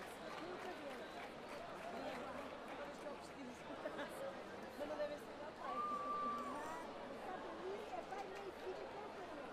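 A crowd of people talks and shouts nearby.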